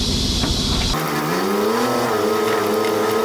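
A truck engine revs up with a rising drone.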